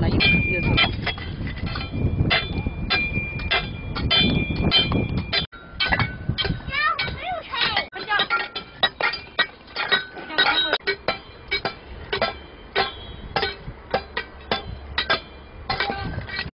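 Bricks knock and clatter against each other.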